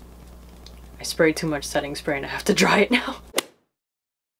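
A young woman speaks close up with animation.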